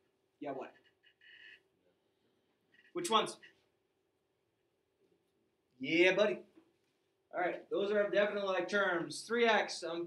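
A man speaks calmly, explaining in short phrases with pauses.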